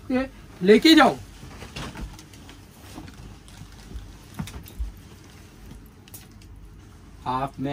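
Fabric rustles as clothes are handled and folded.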